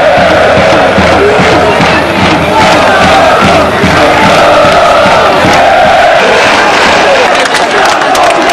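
A large crowd of football supporters chants in unison in an open-air stadium.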